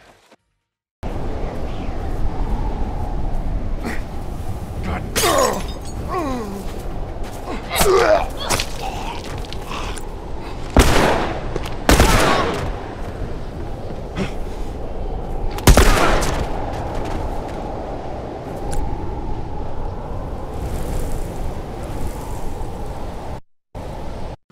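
Wind howls through a snowstorm.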